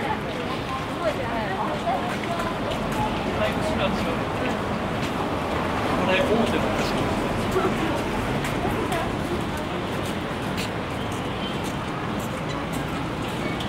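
Footsteps tap on the pavement close by.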